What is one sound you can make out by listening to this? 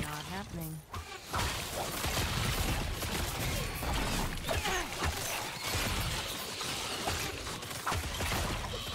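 Monsters screech and groan as they are struck.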